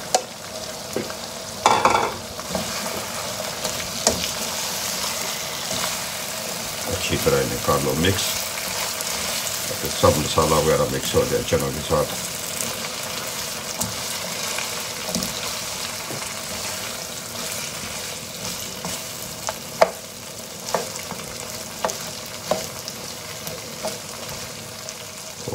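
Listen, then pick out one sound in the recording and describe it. A spatula scrapes and clicks against a frying pan as food is stirred.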